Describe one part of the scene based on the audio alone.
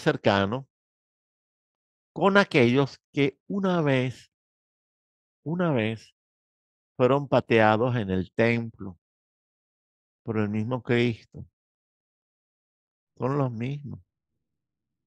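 An older man speaks with animation through a headset microphone, in short bursts with pauses.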